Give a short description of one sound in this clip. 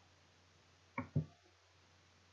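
A computer mouse clicks twice.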